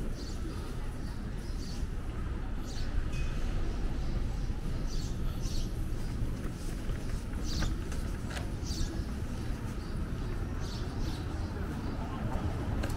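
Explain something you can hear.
Low city traffic rumbles steadily outdoors.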